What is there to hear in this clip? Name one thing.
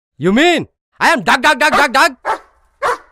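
A young man shouts angrily close by.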